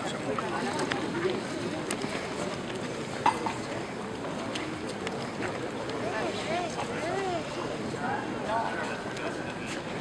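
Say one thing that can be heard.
A crowd murmurs and chatters outdoors in a street.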